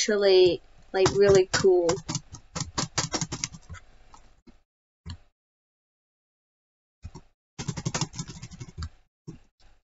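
Quick, short electronic blips chirp in a rapid series, like text being typed out in a game.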